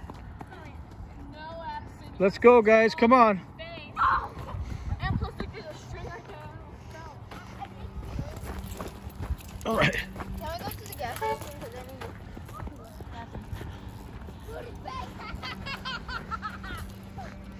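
Children shout and squeal with excitement outdoors.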